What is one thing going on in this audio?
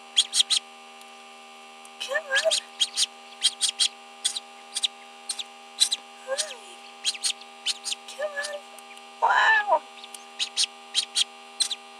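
A chick taps and pecks at its eggshell.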